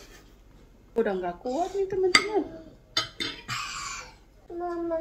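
A young child speaks in a high voice close by.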